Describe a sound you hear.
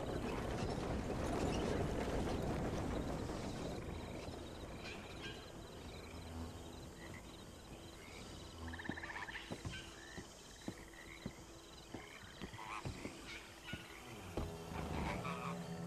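A horse-drawn wagon rattles along a wooden bridge.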